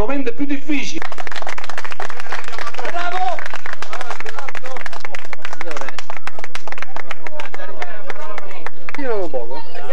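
A small crowd applauds.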